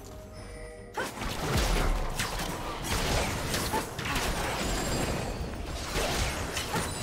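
Spell effects whoosh and crash in a fast game battle.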